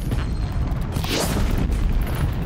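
An arrow whooshes as it is shot.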